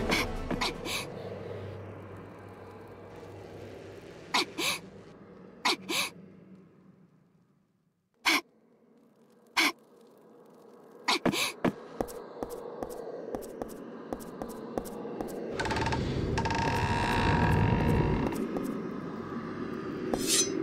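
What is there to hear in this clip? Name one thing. Footsteps crunch as a game character walks.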